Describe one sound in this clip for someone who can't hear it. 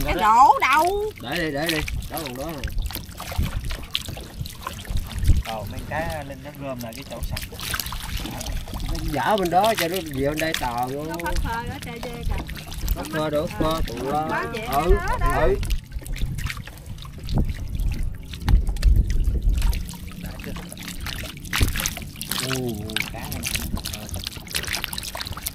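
Fish flap and splash wildly in shallow water.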